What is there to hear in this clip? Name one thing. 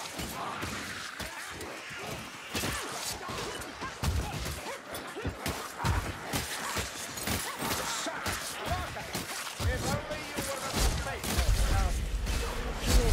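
Weapons slash and thud into creatures in quick, repeated blows.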